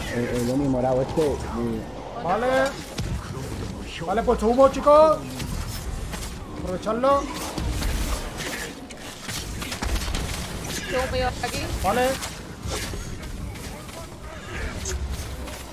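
Swords clash and slash in combat.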